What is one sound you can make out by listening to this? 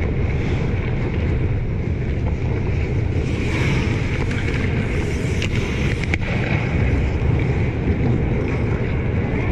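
Ice skates scrape and carve across the ice in a large echoing rink.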